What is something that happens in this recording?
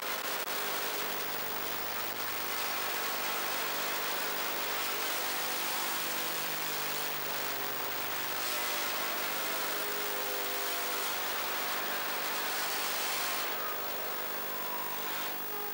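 A buggy's engine roars up close, rising and falling in pitch as it revs.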